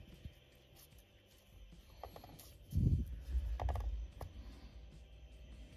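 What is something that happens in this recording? Thin wooden pieces tap and rustle on paper.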